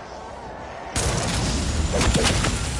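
A heavy weapon fires with a loud roar.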